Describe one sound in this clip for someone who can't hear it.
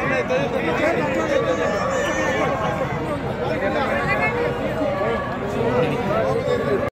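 A large crowd of men and women chatters and calls out loudly outdoors.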